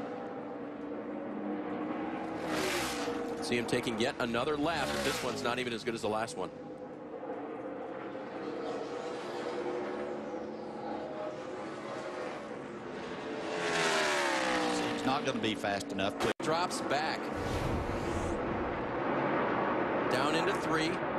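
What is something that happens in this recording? A race car engine roars loudly at speed, its pitch rising and falling as it passes.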